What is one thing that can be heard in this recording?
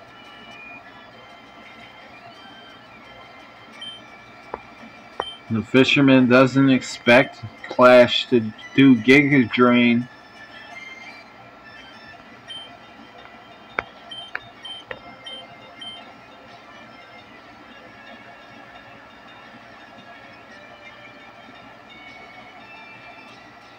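Chiptune game music plays softly and steadily.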